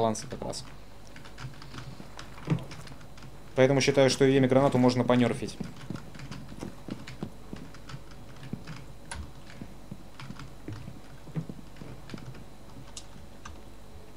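Footsteps tread on a hard floor indoors.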